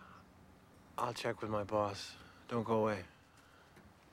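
A younger man speaks cheerfully, close by.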